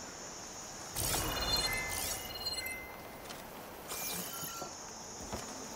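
Short bright chimes ring as items are picked up.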